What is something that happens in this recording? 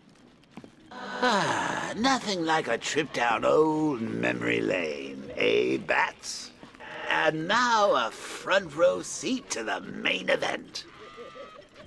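A man speaks with theatrical, mocking animation, close and clear.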